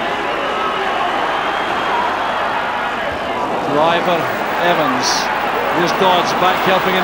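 A large stadium crowd roars steadily outdoors.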